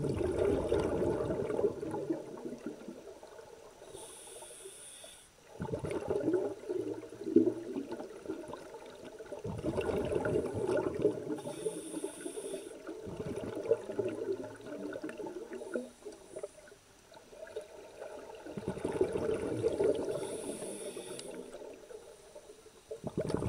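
Air bubbles gurgle and rumble underwater in bursts.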